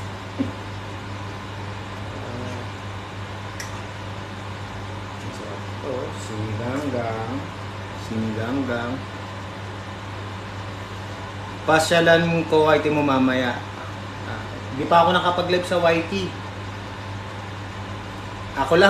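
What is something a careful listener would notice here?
A ladle stirs and scrapes in a pot.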